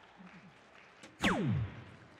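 A dart thuds into an electronic dartboard.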